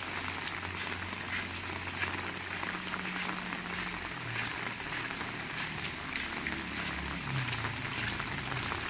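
Rain patters steadily on wet ground outdoors.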